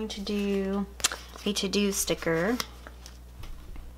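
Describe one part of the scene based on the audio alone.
A paper sticker sheet rustles as a sticker is peeled off.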